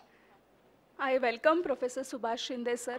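A woman speaks into a microphone over a loudspeaker in a large hall.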